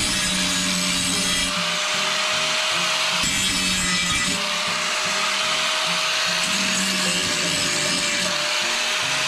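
An angle grinder whines steadily at high speed.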